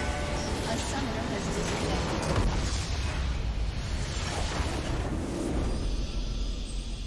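A large explosion booms and crackles.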